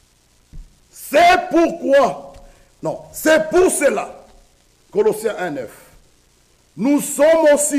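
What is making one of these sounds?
A man preaches loudly and with animation through a microphone in a reverberant room.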